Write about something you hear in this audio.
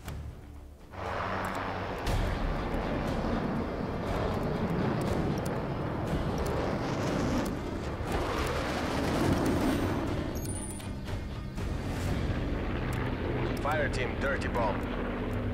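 Aircraft engines roar steadily overhead.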